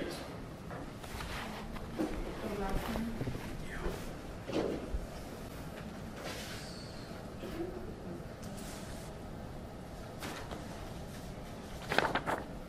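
A man speaks at a distance in a quiet room.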